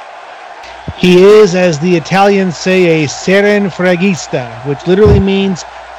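A large crowd chants loudly in unison.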